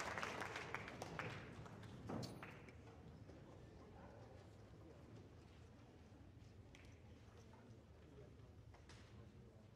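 An orchestra plays softly in a large hall.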